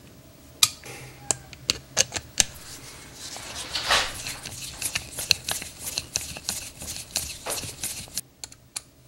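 A screwdriver clicks and scrapes against a metal carburetor.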